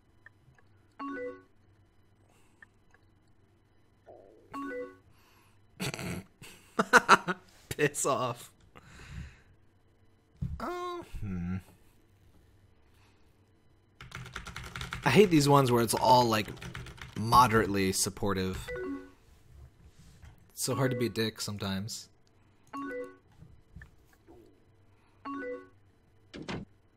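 A short instant-message chime sounds.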